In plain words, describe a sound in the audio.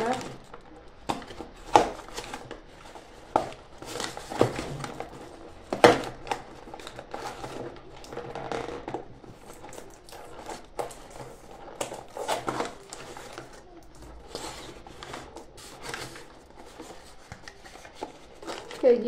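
Paper crinkles and rustles as packets are handled.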